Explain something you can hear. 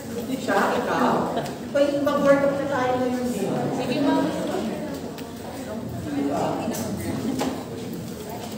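A man speaks through a microphone in a room.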